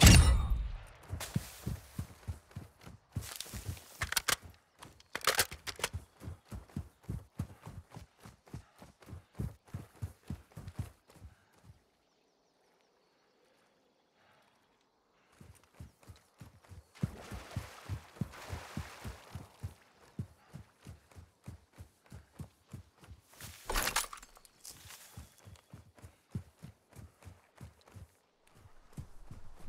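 Footsteps crunch quickly over sand and grass.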